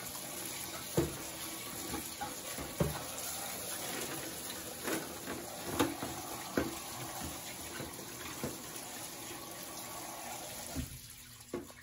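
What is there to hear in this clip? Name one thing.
Metal scissors clatter against each other in a bucket.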